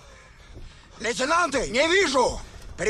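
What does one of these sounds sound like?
A man shouts angrily up close.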